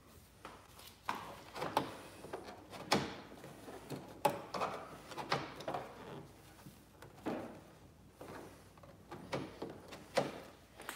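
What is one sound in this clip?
Hands tap and rub against a car's body panel.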